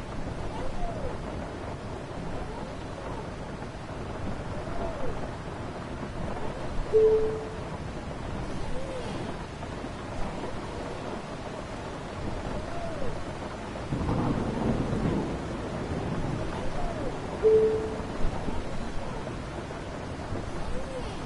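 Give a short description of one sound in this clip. A bus engine hums steadily at idle.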